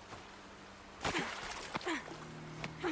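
Water splashes as someone jumps into a stream.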